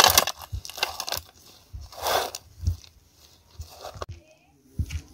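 A metal tool scrapes and digs into dry soil.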